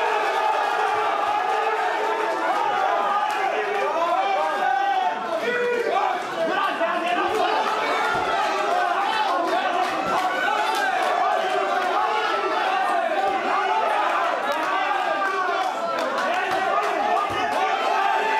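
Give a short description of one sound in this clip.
Punches and kicks thud against bodies.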